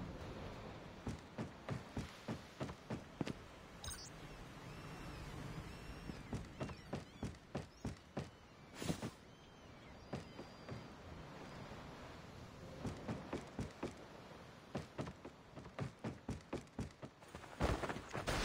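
Footsteps thud steadily on a wooden deck.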